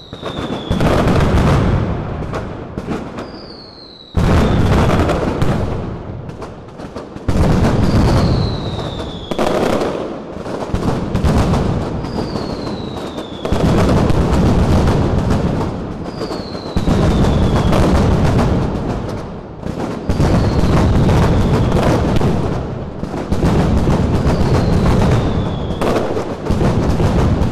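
Firecrackers burst in rapid, loud volleys outdoors, echoing between buildings.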